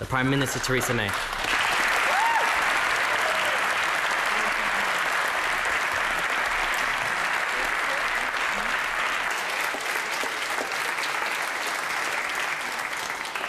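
A large crowd applauds and cheers loudly in a large hall.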